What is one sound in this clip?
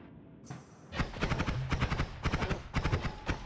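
Rapid laser shots zap in quick succession.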